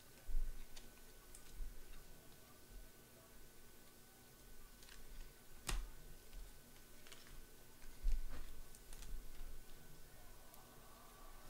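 Trading cards rustle and tap as hands handle them.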